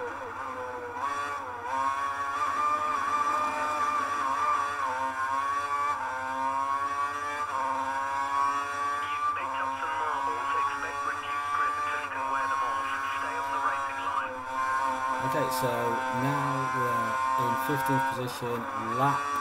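A racing car engine screams at high revs, rising and dropping as gears shift.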